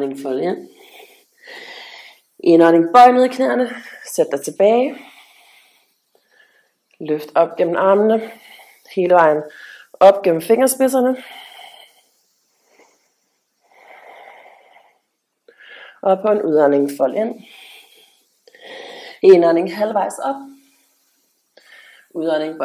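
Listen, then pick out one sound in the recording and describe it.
A woman speaks calmly and clearly, giving instructions in short phrases.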